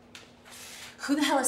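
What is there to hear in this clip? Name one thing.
A young man speaks in surprise.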